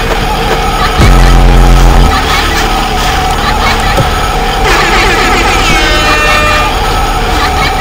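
A loud electronic screech blares.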